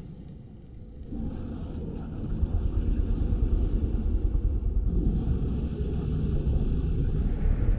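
A large crocodile bites and thrashes its prey in the water with heavy splashing.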